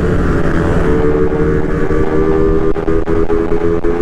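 A truck rumbles by close alongside.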